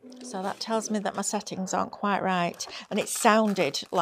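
A plastic cutting mat slides on a table.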